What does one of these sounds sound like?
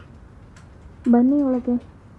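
A woman calls out briefly, muffled through a closed door.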